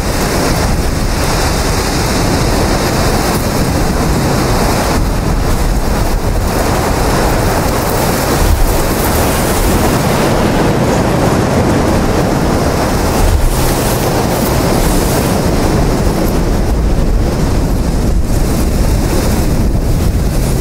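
Tall grass rustles and swishes in the wind.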